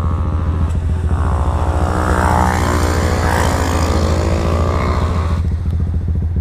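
Another motorbike roars past nearby, its engine rising in pitch and then fading.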